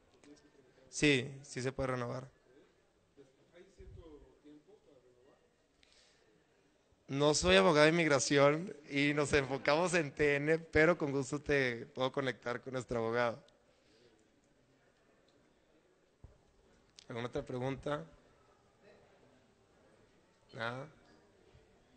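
A man speaks into a microphone in short bursts with pauses.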